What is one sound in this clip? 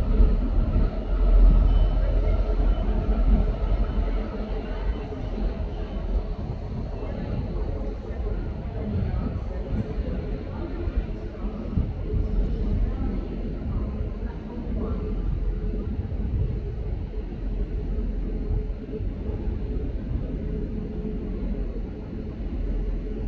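A diesel locomotive engine rumbles steadily nearby.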